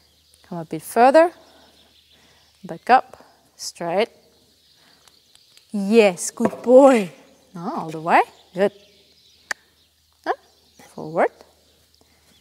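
A young woman talks calmly and warmly nearby in a large echoing hall.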